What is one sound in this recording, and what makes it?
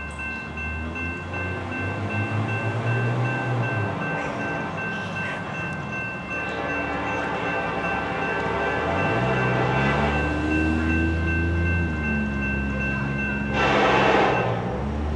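A diesel locomotive engine rumbles as it approaches.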